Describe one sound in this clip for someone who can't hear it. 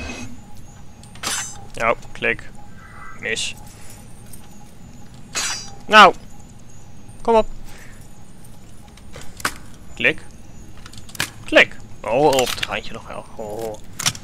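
A metal lock clicks as it is being picked.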